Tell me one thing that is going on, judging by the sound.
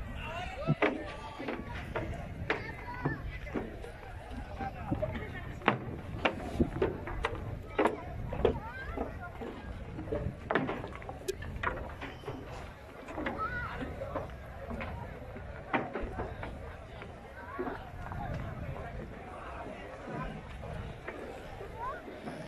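A crowd of people chatters nearby, outdoors.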